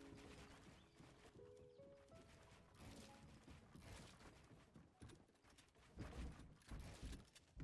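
Wooden walls and ramps thump into place as they are built.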